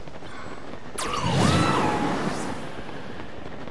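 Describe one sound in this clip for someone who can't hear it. A gust of wind rushes upward with a loud whoosh.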